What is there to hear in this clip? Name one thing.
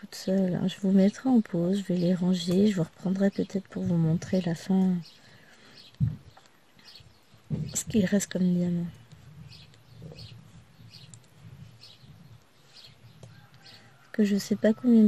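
A plastic pen tool taps and clicks softly against a canvas of tiny beads.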